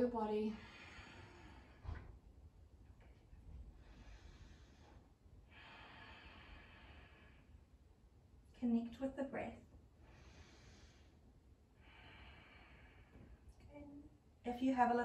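A woman breathes in and out slowly and deeply.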